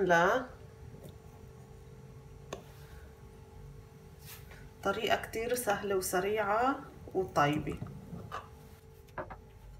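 A knife taps and scrapes against a glass dish.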